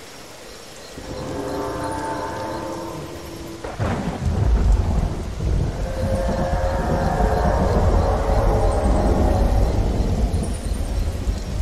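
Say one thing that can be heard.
A large reptile lets out deep, rumbling roaring calls.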